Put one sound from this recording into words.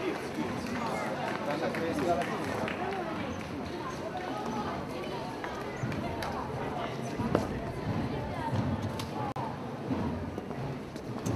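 A crowd of people murmurs and talks nearby, outdoors.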